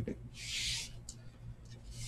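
Dice rattle in a hand.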